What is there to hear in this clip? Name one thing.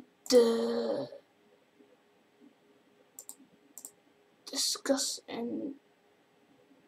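A young boy speaks briefly close to a microphone.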